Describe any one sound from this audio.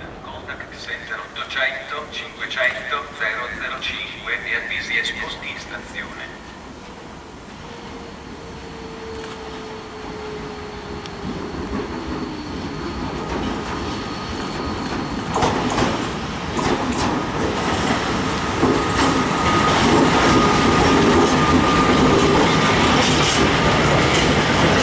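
An electric locomotive hauling a freight train approaches and passes close by.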